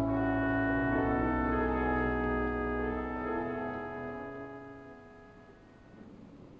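A choir sings in a large echoing hall and fades away.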